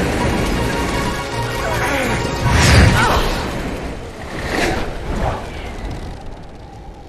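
A small flying machine roars and whooshes past.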